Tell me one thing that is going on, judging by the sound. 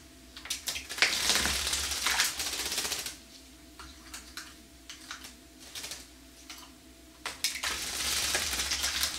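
A bird splashes and flutters in shallow water.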